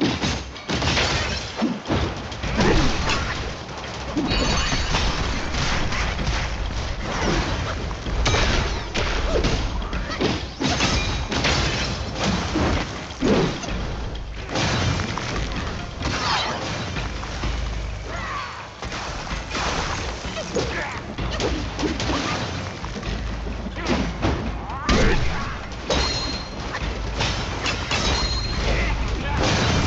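Blasts and bursts of fire boom and crackle.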